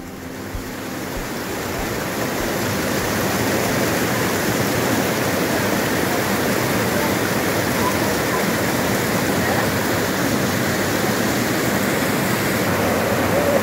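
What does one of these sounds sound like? A shallow creek babbles and trickles over stones.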